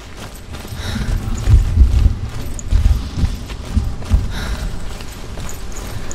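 Footsteps rustle through tall grass and plants.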